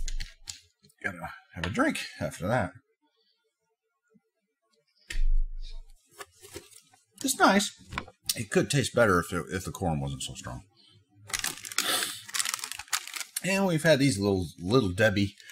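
A man talks calmly close to a microphone.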